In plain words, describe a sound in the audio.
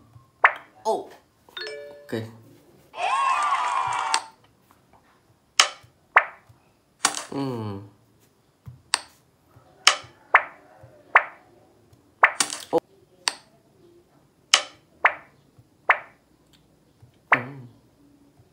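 Short game sound effects pop and blip from a small phone speaker.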